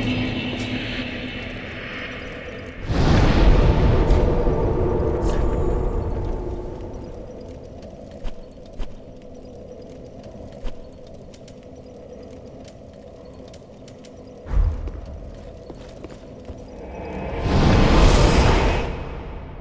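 A bonfire crackles softly.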